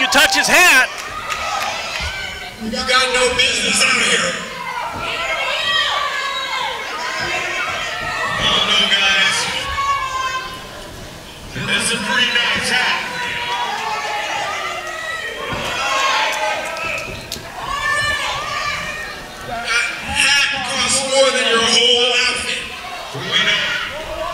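A man shouts loudly into a microphone, heard through loudspeakers in an echoing hall.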